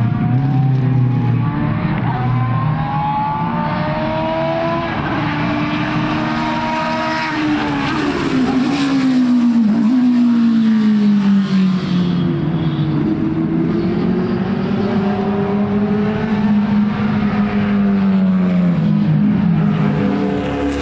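A racing car engine screams and shifts gears as the car speeds past.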